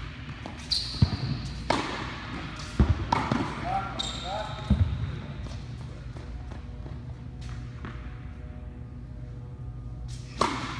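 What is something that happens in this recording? A tennis ball is struck by a racket with sharp pops that echo through a large hall.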